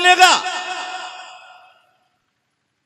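A man chants loudly into a microphone through loudspeakers, and the voice echoes away.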